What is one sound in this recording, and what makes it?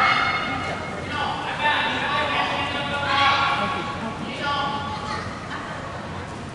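Young people in a crowd call out loudly in a large echoing hall.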